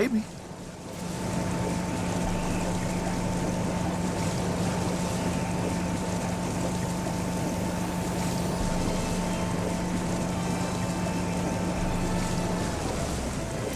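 A speedboat engine drones steadily.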